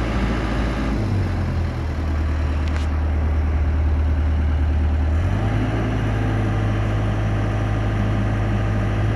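A diesel engine rumbles steadily close by.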